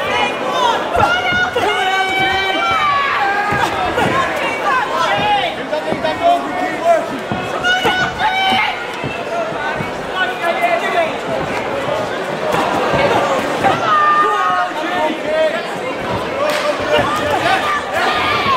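Boxing gloves thud with punches.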